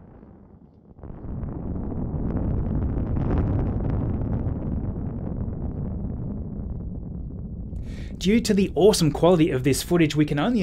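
A rocket engine rumbles steadily.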